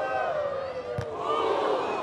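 A volleyball is struck with a dull thump.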